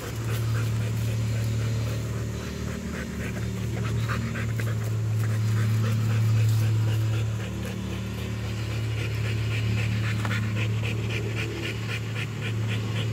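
A dog pants heavily and rapidly close by.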